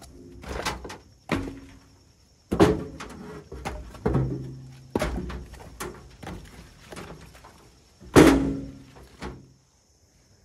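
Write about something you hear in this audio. Logs knock and scrape as they are loaded onto a metal trailer.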